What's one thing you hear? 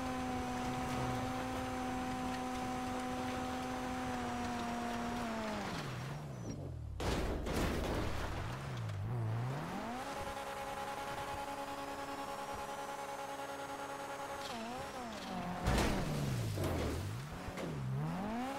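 A car engine drones steadily, then drops and revs up and down in pitch.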